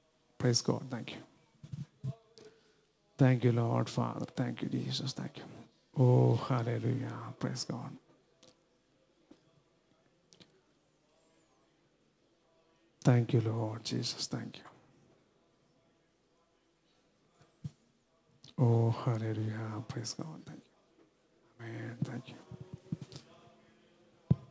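An elderly man speaks slowly and solemnly through a microphone in a large echoing hall.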